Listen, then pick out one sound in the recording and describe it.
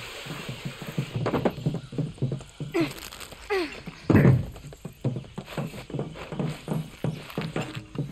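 Footsteps clank quickly on a metal walkway.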